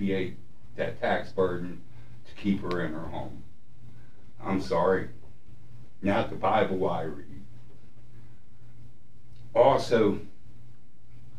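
An elderly man speaks calmly into a microphone in short bursts with pauses.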